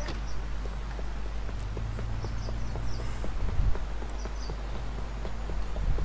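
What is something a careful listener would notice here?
Footsteps patter on pavement.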